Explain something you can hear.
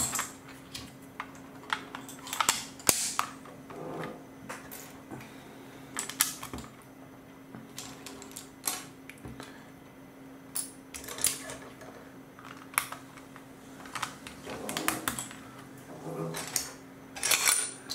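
Plastic toy bricks clatter and click as hands sort through a pile.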